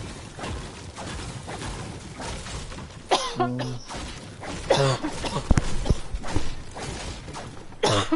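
A pickaxe strikes a wall with sharp, repeated thuds.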